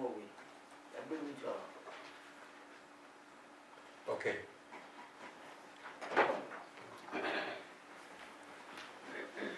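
A man speaks into a microphone in a room with some echo.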